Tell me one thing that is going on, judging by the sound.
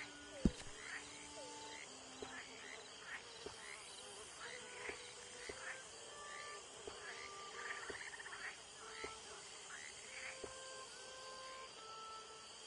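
Soft menu clicks and blips sound as options are scrolled through.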